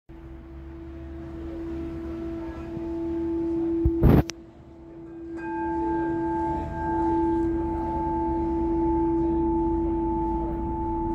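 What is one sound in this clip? A crystal singing bowl rings with a steady, humming low tone.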